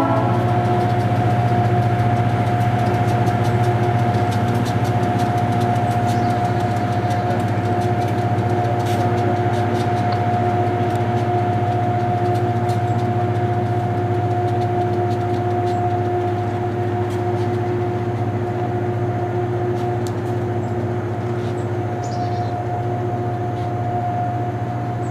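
Diesel locomotive engines rumble loudly and steadily as a freight train passes below.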